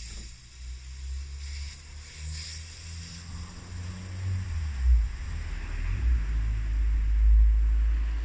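A metal wrench scrapes and clicks against a bolt.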